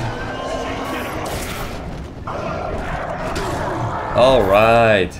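A heavy gun fires rapidly with a loud roar.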